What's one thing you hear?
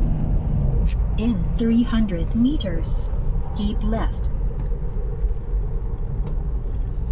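A car drives along a road with a steady low rumble of engine and tyres.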